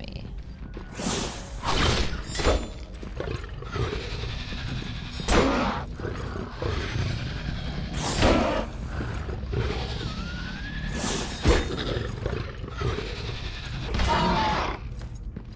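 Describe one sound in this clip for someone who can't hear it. A sword slashes and clangs against a creature.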